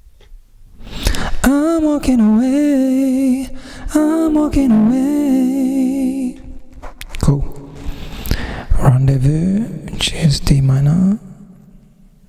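A young man sings into a close microphone with a wavering, held voice.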